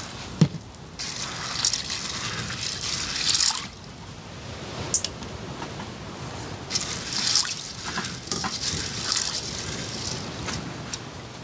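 Hands squish and mash wet fruit in a metal bowl.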